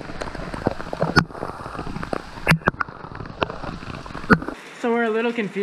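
Heavy rain pours down outdoors, with drops tapping close by.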